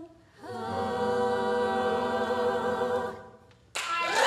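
A young woman sings a long held note into a microphone.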